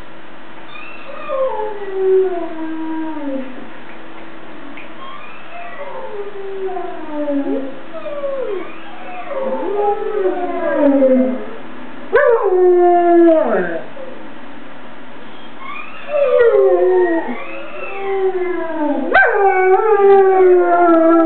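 A dog howls in long, falling wails close by.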